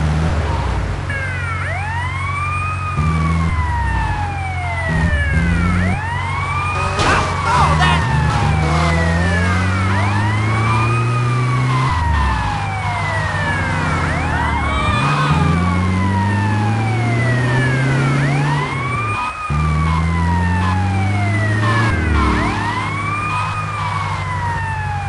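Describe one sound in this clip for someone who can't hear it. A police siren wails in rising and falling sweeps.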